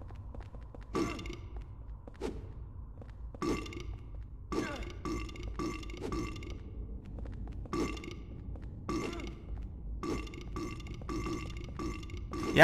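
Footsteps thud slowly on stone stairs.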